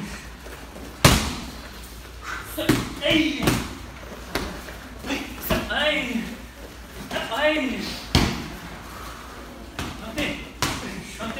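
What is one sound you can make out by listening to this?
Gloved punches and kicks smack against pads in sharp bursts.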